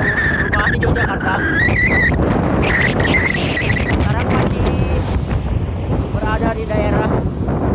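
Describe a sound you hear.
Wind roars loudly against the microphone.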